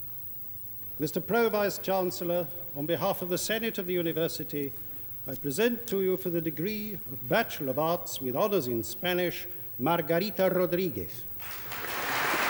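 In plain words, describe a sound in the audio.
A man reads out through a loudspeaker in a large echoing hall.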